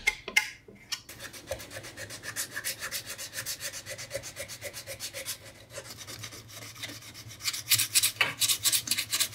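Sandpaper rubs rapidly back and forth on metal.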